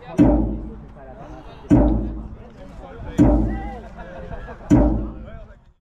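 Players shout to each other across an open field in the distance.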